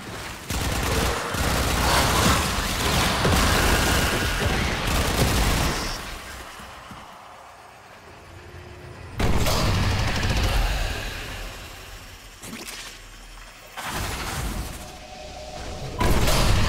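Loud electronic game effects whoosh and crackle in bursts.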